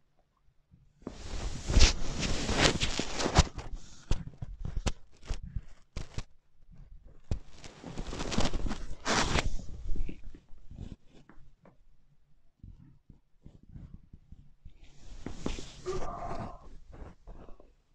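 Clothing rustles and rubs as one person stretches and presses another's back.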